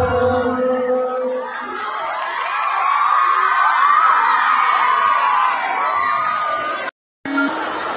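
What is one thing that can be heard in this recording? A large crowd cheers and calls out loudly.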